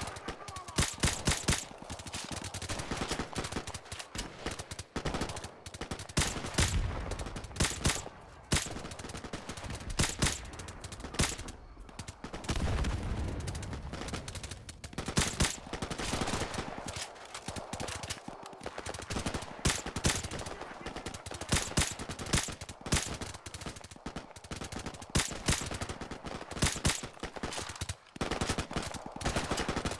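Rifle shots crack out one after another.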